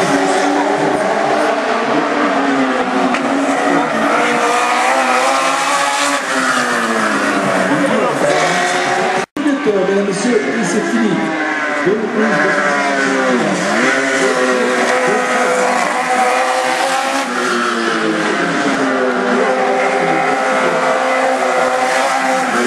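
Racing car engines roar and rev nearby, rising and falling in pitch as the cars pass.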